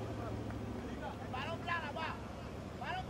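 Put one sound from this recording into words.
Young men shout out across an open field.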